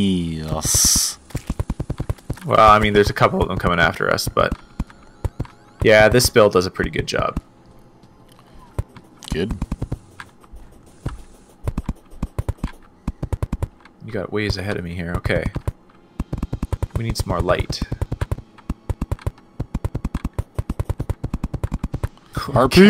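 A weapon fires rapid bursts of clicking shots.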